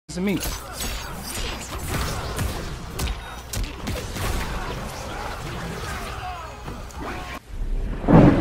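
Fighters trade blows that land with sharp thuds and whooshes.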